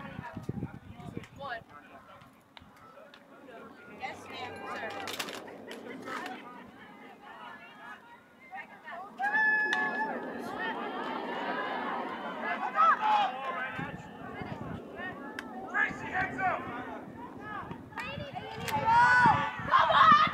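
Young women players call out to one another across the field.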